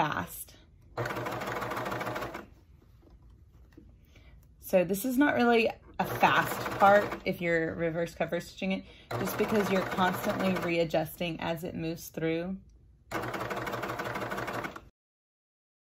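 A serger sewing machine runs in short steady bursts.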